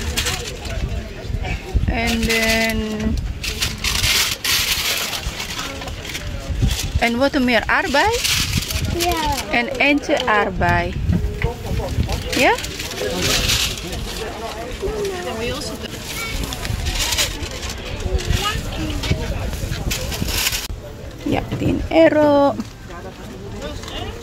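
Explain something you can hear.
Voices of a crowd murmur in the background outdoors.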